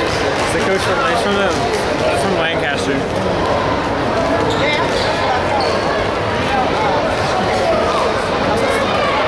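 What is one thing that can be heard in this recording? A crowd chatters and calls out throughout a large echoing gym.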